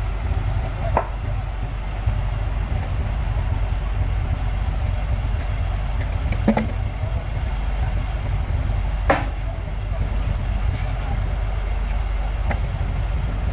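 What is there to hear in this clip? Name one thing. Wooden planks knock and clatter against the road.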